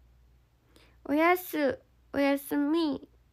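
A young woman speaks brightly and close to the microphone.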